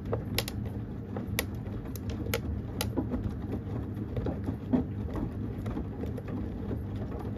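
Wet laundry tumbles and sloshes inside a washing machine drum.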